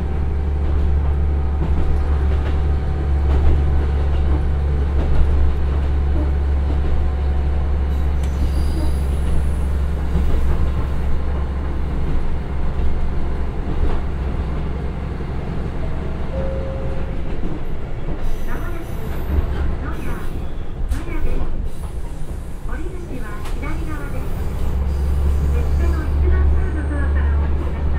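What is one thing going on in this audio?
A diesel railcar engine drones steadily, with a deep low rumble.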